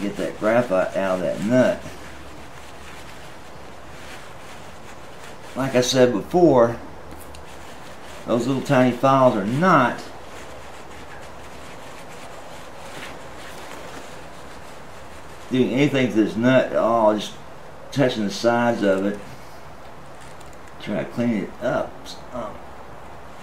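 An electric guitar string rings and slides in pitch as it is tuned.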